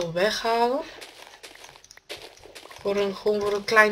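A spade digs into dirt with short crunching thuds.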